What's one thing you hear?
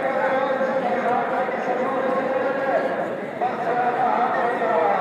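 A large crowd of men chants together outdoors.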